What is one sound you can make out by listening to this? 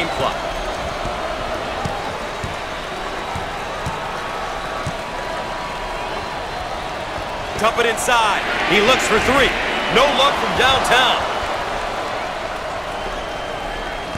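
A crowd murmurs and cheers steadily in a large echoing arena.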